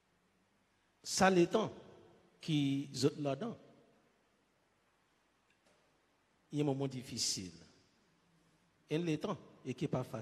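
A man speaks slowly and calmly into a microphone, in phrases with pauses, in a reverberant room.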